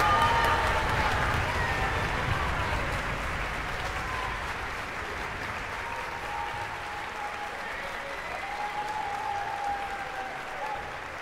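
An orchestra plays softly in a large echoing hall.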